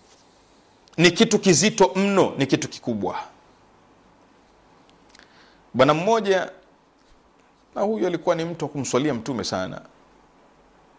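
A man speaks calmly and deliberately into a close microphone, with pauses between phrases.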